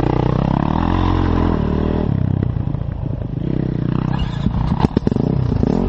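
A dirt bike engine idles and revs up close by, its pitch rising and falling.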